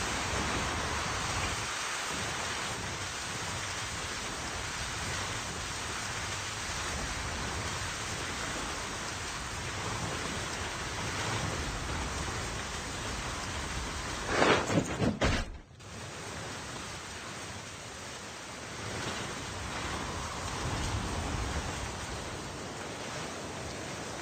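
A hoverboard hums steadily as it glides over grass and dirt.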